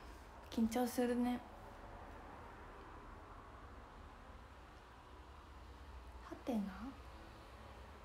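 A young woman speaks softly and briefly, close to a microphone.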